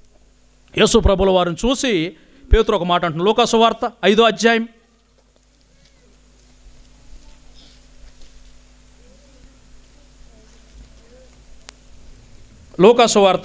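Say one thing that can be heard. A young man recites with feeling into a microphone over a loudspeaker.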